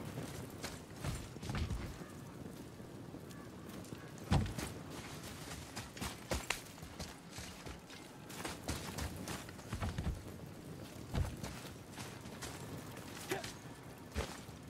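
Heavy footsteps thud on dirt and wooden planks.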